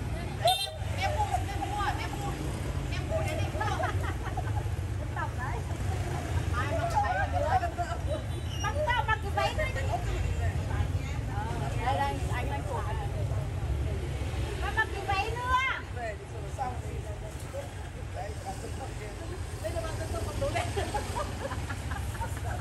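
Middle-aged women talk and laugh with animation close by.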